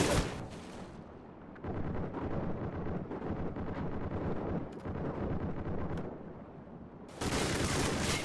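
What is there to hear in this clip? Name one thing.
Sound turns muffled and dull underwater.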